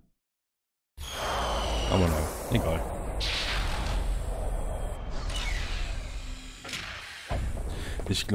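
A spaceship engine hums steadily and roars.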